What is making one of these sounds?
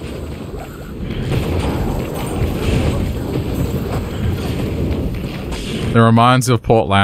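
Fighting sounds clash and crackle.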